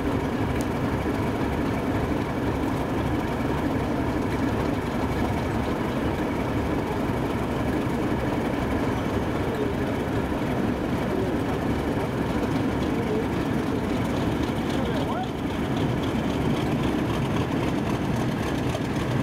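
A diesel locomotive rolls slowly toward the listener along the track.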